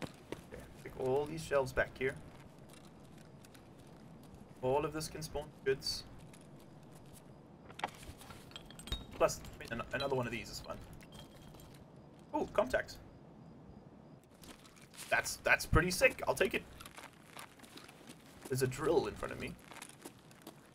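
A man talks calmly and close into a microphone, in short bursts.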